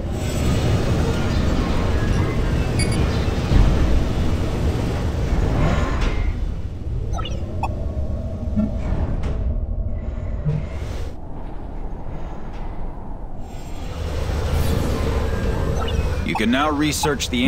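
Heavy machines rumble low and steadily.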